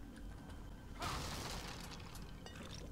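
A wooden crate smashes and splinters apart.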